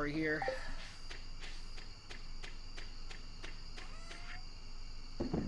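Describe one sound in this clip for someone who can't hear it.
Soft footsteps tap at an even pace.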